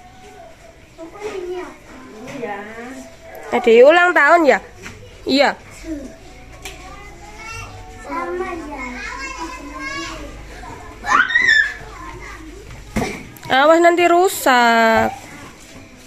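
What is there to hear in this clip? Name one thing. Young children talk and shout excitedly close by.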